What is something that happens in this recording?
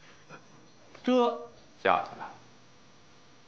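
A man speaks sharply and briefly.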